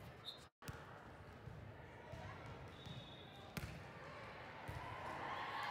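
A volleyball is struck with a sharp slap in a large echoing hall.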